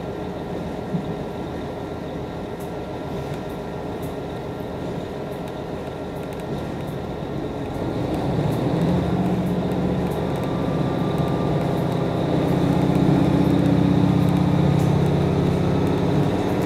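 A train rumbles steadily along the tracks, growing louder and deeper.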